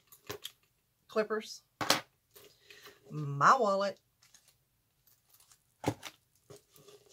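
Items clink and rustle inside a bag.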